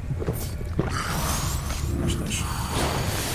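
Flames whoosh and roar during a sword strike.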